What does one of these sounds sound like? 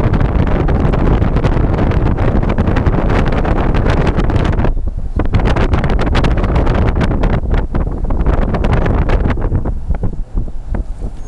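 Wind buffets loudly across the microphone outdoors.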